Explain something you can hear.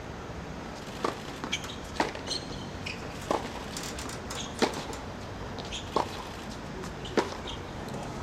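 A tennis racket strikes a ball with sharp pops, several times, outdoors.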